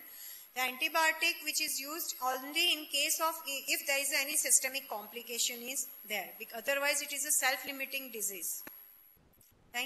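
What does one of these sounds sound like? A woman lectures calmly into a microphone.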